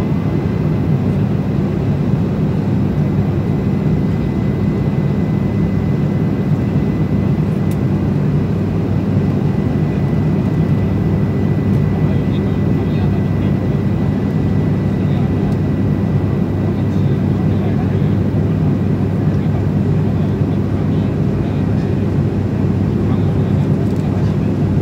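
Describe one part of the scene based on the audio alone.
An aircraft engine drones steadily in the cabin.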